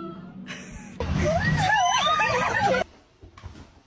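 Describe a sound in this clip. A puppy howls in a high, wavering voice.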